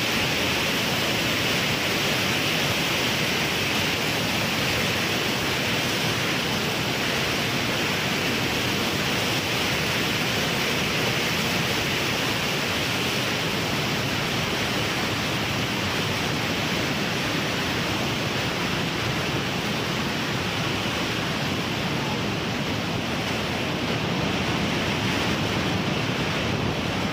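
A drone's motors whine steadily.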